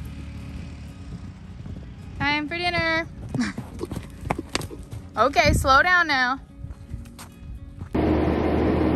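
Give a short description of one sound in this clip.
Hooves thud on soft ground as horses trot.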